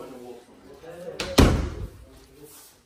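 A door bumps as a hand pushes it.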